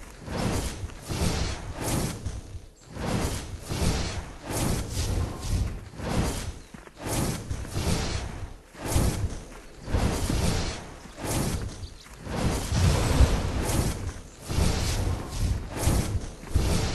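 Magic spells burst with repeated whooshing blasts.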